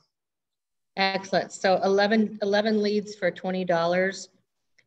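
A woman speaks calmly and closely into a microphone.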